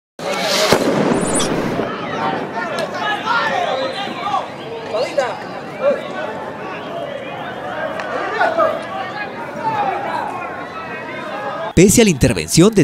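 A crowd shouts and yells outdoors.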